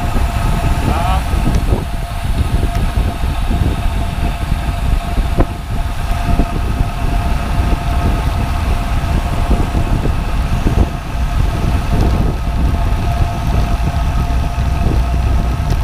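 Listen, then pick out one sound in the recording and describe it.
A bicycle freewheel whirs with a steady tone.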